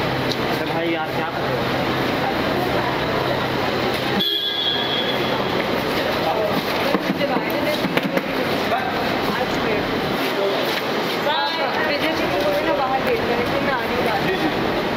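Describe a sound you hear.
A crowd of men talk and call out over one another close by.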